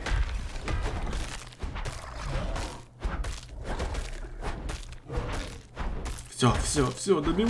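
Game combat clashes and thuds rapidly.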